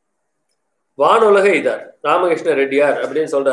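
An elderly man reads aloud in a steady, chanting voice, close to the microphone.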